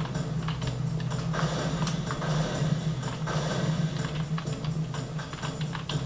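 Game gunfire and effects play from desktop speakers.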